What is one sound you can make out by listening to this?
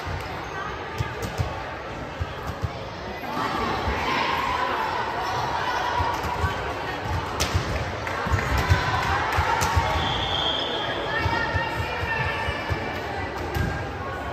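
A volleyball thumps as it is served and hit.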